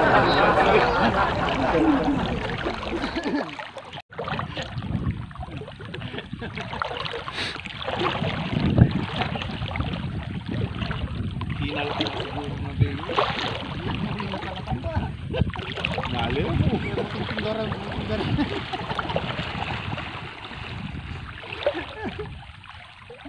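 Water splashes as people wade through a shallow river.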